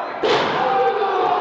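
A body slams onto a wrestling ring mat with a thud.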